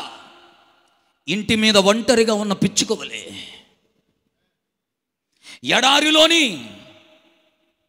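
A man preaches loudly and with passion into a microphone, his voice echoing in a large hall.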